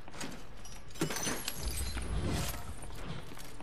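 A treasure chest creaks open with a bright jingling chime.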